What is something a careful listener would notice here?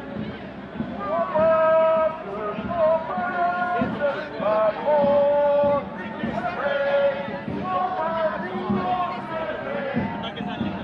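Voices in the crowd chant and sing loudly.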